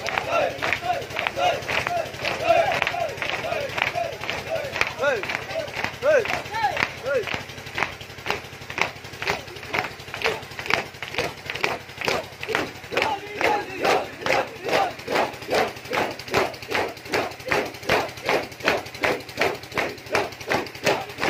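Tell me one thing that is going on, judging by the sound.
Many hands beat on chests in a steady, fast rhythm.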